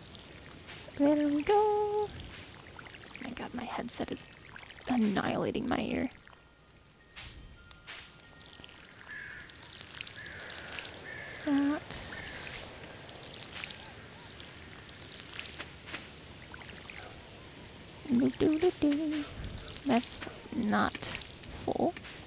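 Water splashes from a watering can.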